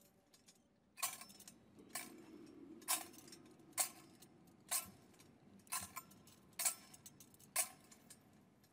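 A censer's metal chains clink rhythmically in a large echoing church.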